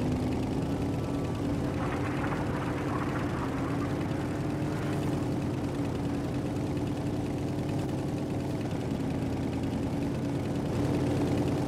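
A vehicle engine hums steadily as it drives along.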